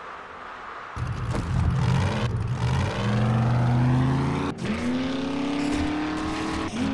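An engine starts and revs up, rising in pitch as a vehicle drives off.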